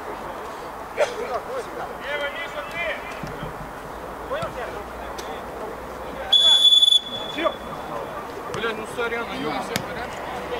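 Men shout to each other.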